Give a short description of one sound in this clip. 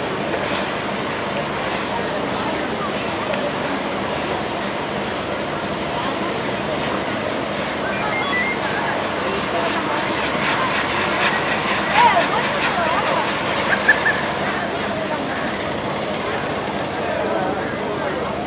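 A firework fountain hisses and roars steadily outdoors.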